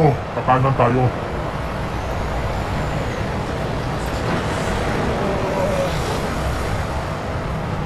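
A double-decker bus drives past.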